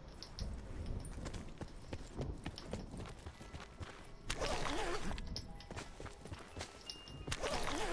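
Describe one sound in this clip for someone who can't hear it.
Footsteps run through rustling grass.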